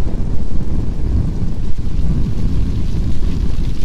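Flames roar and crackle on a burning car.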